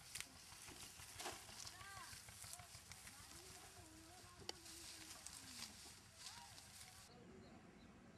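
Dry sugarcane stalks rustle and crackle as they are stacked.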